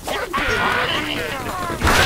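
A cartoon bird squawks as it is flung.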